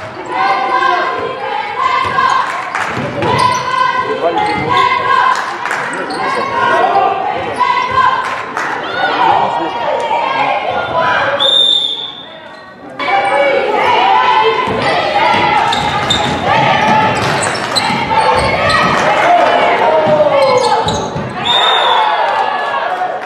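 Young women players shout to each other in an echoing hall.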